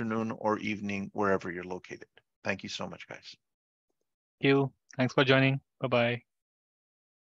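A man speaks calmly through a headset microphone on an online call.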